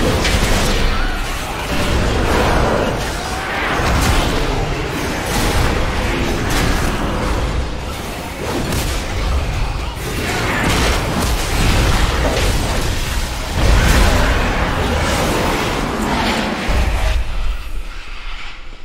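Game combat sounds clash and boom with spell effects.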